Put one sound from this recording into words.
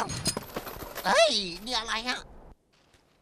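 A cartoon dog whimpers and whines in fear.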